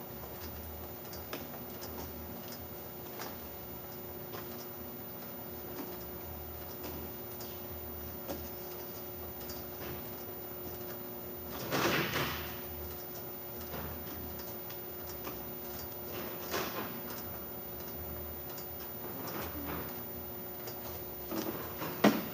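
A labelling machine hums steadily.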